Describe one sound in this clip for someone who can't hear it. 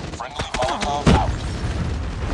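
A grenade explodes nearby.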